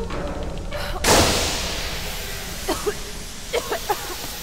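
A loud blast bursts and its rumble slowly fades.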